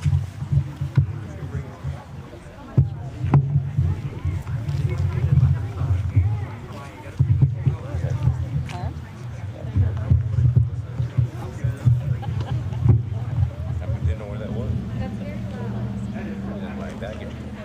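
A crowd of young people murmurs and chatters outdoors.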